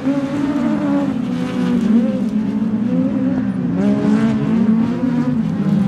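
Tyres spray gravel and dirt as a car slides off the track.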